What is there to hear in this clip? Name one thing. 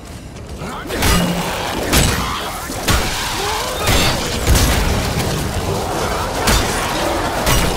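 Gunshots crack loudly in rapid bursts.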